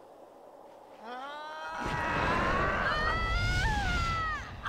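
A woman screams long and loud, her voice rising and falling.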